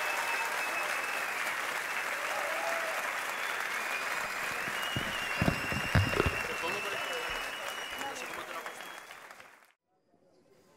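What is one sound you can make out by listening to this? An audience applauds loudly in a large hall, then fades.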